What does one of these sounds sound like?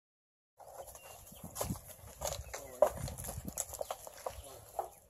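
A horse's hooves thud on the ground as it walks.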